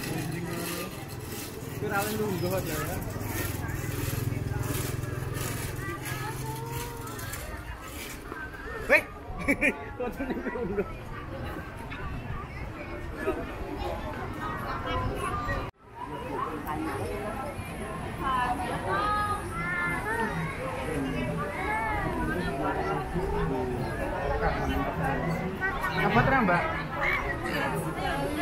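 A crowd of onlookers chatters outdoors along a street.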